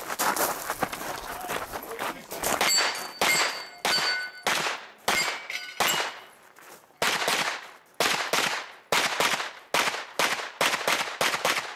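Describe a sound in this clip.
Pistol shots ring out in quick bursts outdoors, with a sharp echo.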